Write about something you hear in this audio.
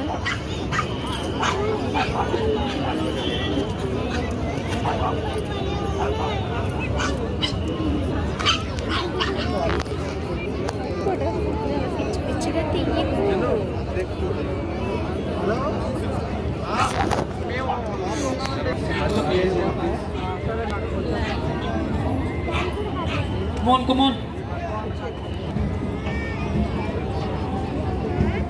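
Dogs bark now and then.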